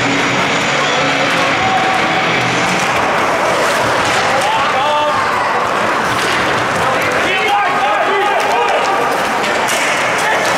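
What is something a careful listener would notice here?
Skates scrape and carve across the ice in a large echoing rink.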